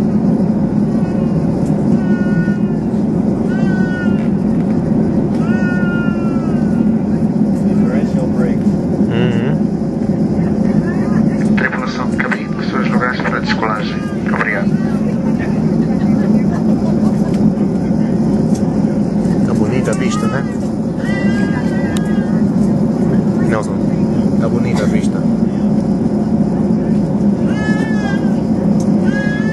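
Jet engines roar steadily as an airliner taxis.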